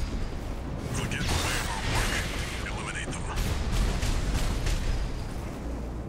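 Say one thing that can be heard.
Explosions and gunfire blast from a video game.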